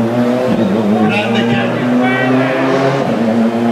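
Tyres squeal on wet tarmac.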